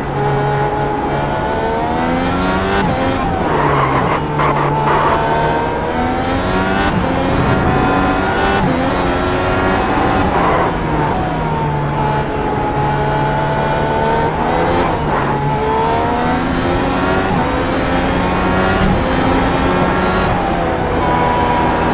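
A racing car engine roars, rising in pitch through the gears and dropping as it slows for corners.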